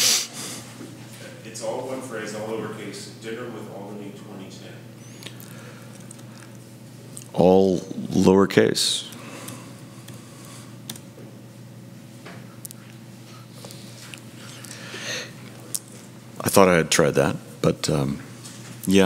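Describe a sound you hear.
A man speaks through a microphone in a meeting, in a room with a slight echo.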